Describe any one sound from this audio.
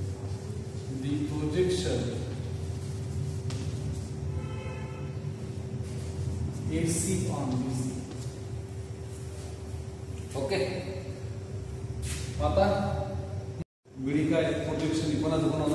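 A man speaks calmly, explaining, with a slight room echo.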